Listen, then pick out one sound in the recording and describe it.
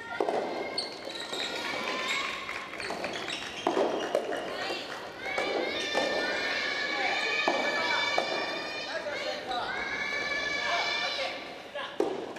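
Young women shout loudly across the hall.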